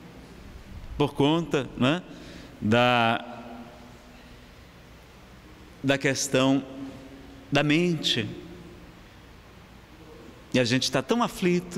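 A man speaks into a microphone in short, expressive bursts with pauses.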